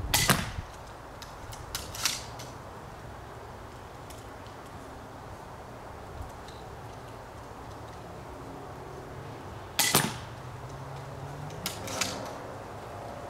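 Arrows thud sharply into a target.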